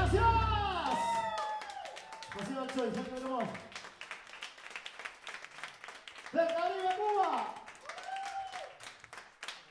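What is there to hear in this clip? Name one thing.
A man sings out loudly through a microphone and loudspeakers.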